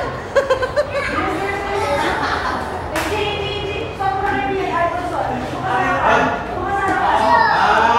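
A middle-aged woman laughs loudly close by.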